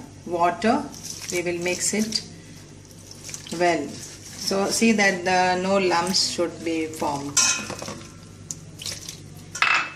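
Water pours into a metal bowl.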